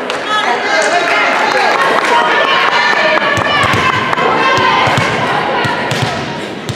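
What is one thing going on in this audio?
A volleyball thumps off hands and the floor.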